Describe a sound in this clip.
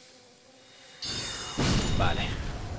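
A magic spell bursts with a bright whoosh.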